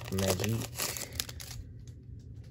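Plastic wrapping crinkles in a hand.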